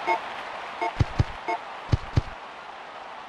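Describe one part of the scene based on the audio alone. Short electronic beeps sound as menu choices are made.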